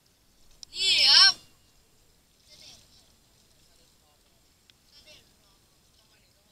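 A paddle splashes softly in calm water.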